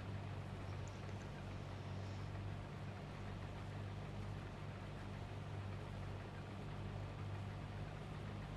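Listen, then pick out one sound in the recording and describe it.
A combine harvester engine hums steadily with a low drone.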